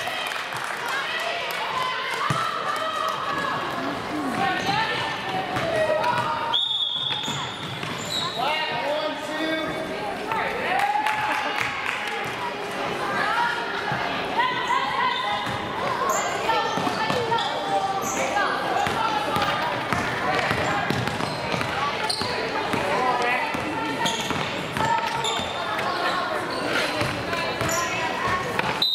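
Young girls shout and call out to each other in a large echoing gym.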